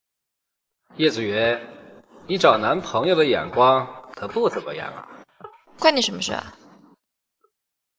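A young man speaks nearby with animation.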